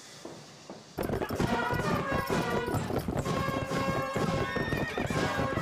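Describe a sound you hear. Horses' hooves gallop over muddy ground.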